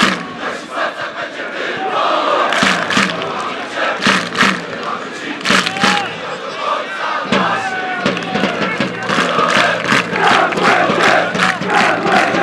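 A large crowd claps rhythmically.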